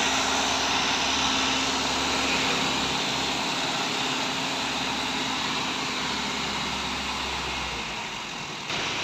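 A truck engine idles nearby with a low rumble.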